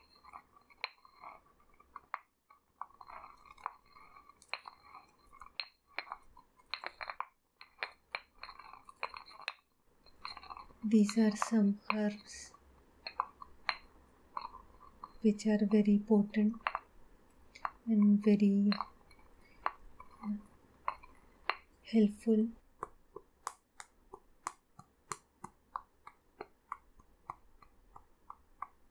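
Dry herbs rustle and crackle between rubbing hands.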